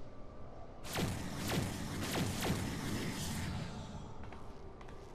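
A shimmering magical burst swells and fades.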